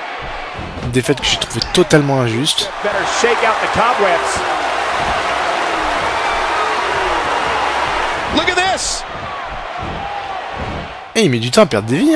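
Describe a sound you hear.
A heavy body thuds onto a wrestling mat.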